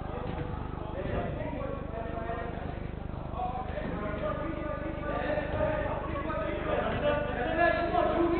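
Men shout and call to each other across a large echoing indoor hall.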